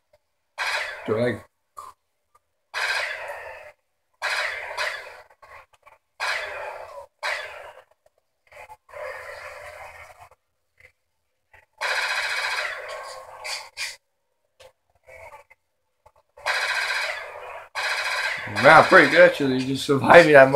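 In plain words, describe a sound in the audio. Gunfire from a video game crackles in bursts through a television speaker.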